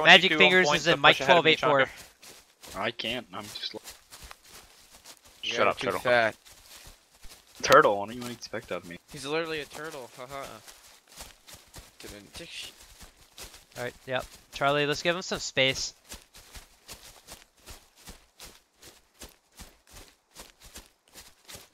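Footsteps swish steadily through grass.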